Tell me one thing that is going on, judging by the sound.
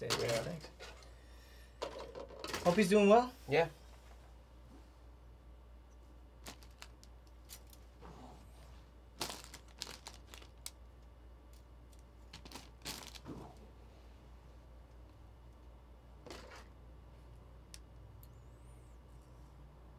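Cards and packaging rustle and tap.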